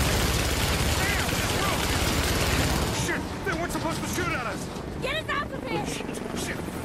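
A man talks close to a microphone.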